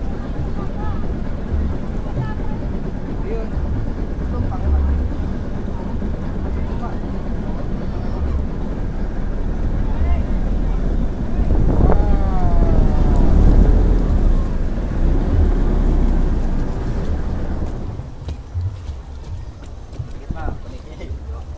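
Water splashes against a wooden hull.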